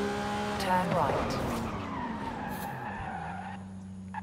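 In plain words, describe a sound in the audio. A supercar engine winds down as the car brakes.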